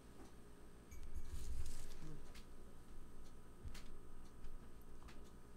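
An elderly woman sips from a mug.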